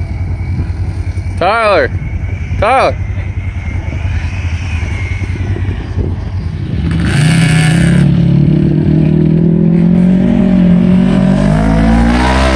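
An off-road vehicle's engine rumbles and revs nearby.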